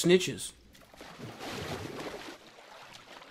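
Water splashes as someone swims.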